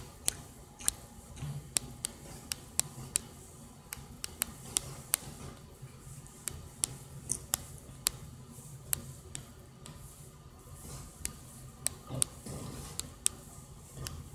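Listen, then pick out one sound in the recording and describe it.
Sharp keyboard clicks tap out at an uneven pace.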